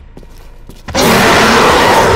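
A heavy gun fires a shot.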